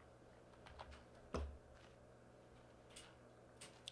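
Blocks crunch as they are broken.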